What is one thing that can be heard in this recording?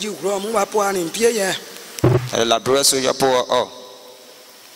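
A woman speaks into a microphone over a loudspeaker, slowly and with feeling.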